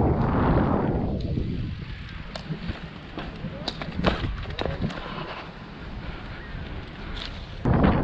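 Bicycle tyres roll over a paved path.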